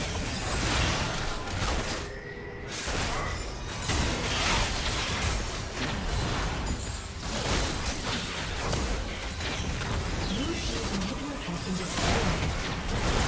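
Spell blasts and hits crackle and boom in a game battle.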